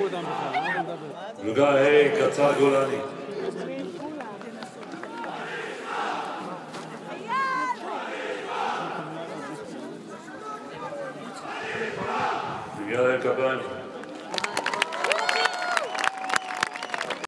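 A large crowd of men and women sings together outdoors.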